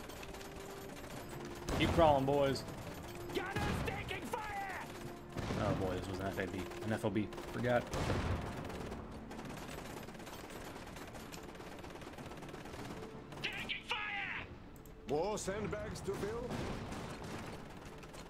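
Rifles and machine guns fire in short bursts.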